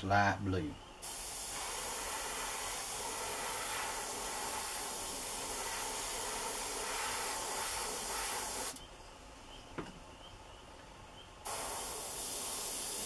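An airbrush hisses steadily as it sprays.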